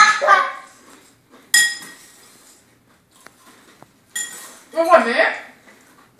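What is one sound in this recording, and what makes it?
A spoon clinks against a bowl.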